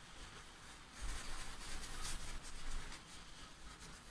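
A cloth rubs against a coin.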